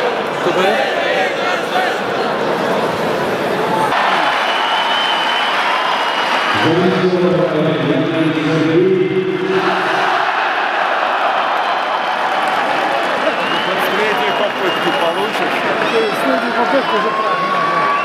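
A large stadium crowd chants and sings loudly in unison.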